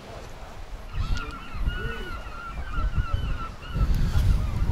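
Seagulls cry overhead.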